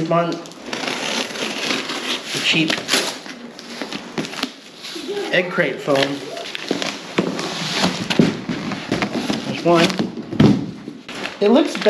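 Cardboard boxes scrape and thump as they are shifted.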